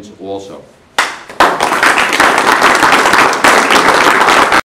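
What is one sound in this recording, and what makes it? People clap their hands loudly.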